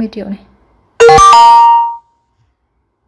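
A phone gives a short chime.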